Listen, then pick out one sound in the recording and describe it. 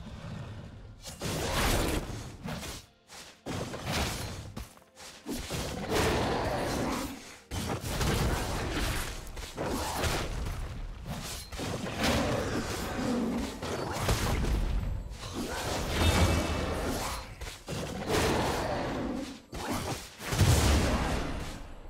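Video game blows and magical blasts clash in a fight.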